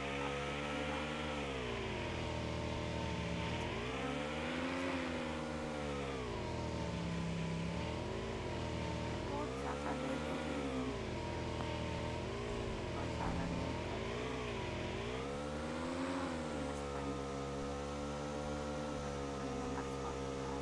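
A motorbike engine hums steadily, its pitch rising and falling as it speeds up and slows down.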